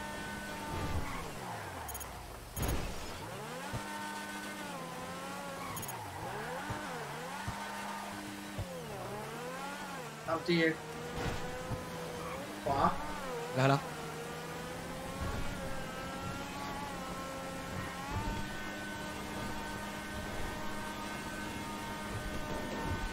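A car engine roars and revs up and down as the car speeds along.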